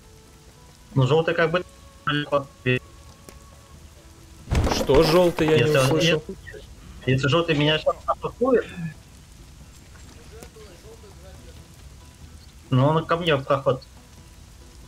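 A young man talks into a microphone in short bursts, with animation.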